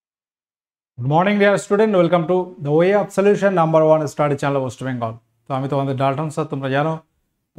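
A young man talks to the listener with animation, close to a microphone.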